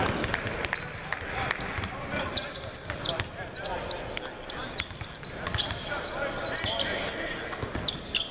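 Basketballs bounce and thud on a hard court, echoing in a large hall.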